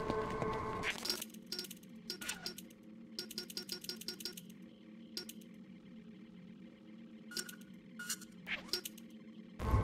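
Short electronic menu clicks blip in quick succession.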